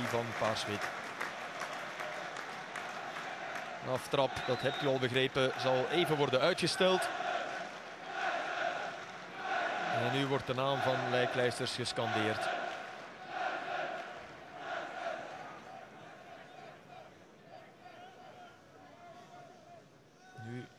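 A large stadium crowd sings together outdoors.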